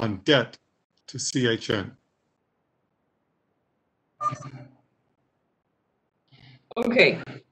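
A middle-aged man speaks calmly through an online call, pausing between phrases.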